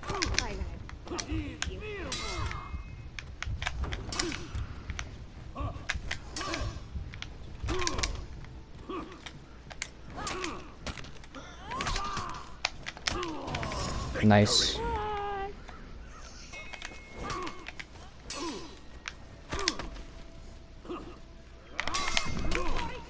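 Steel swords clash and ring in close combat.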